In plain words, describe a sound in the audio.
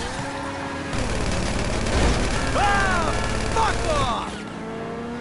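Car tyres screech while skidding on tarmac.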